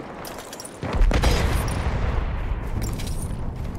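A heavy explosion booms and rumbles away.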